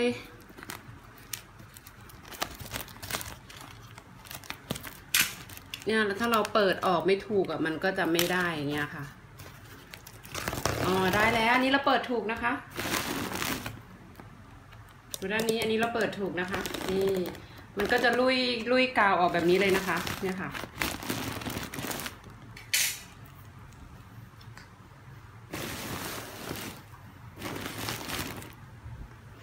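Plastic sheeting crinkles and rustles under handling.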